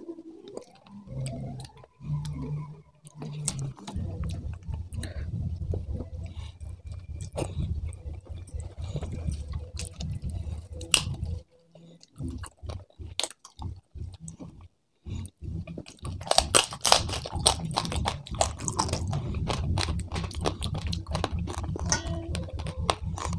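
A man chews food noisily and smacks his lips close up.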